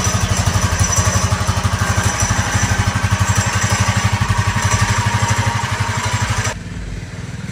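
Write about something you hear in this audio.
A dirt bike engine idles close by with a rapid, steady putter.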